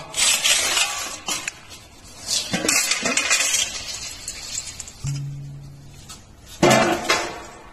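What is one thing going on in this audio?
A metal bowl clanks on a hard floor.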